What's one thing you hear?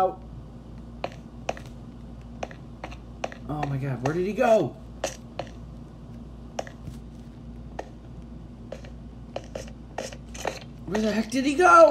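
Footsteps tap on stone at a walking pace.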